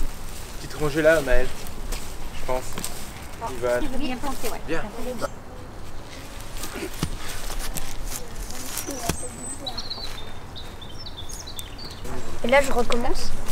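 A young boy talks cheerfully close by.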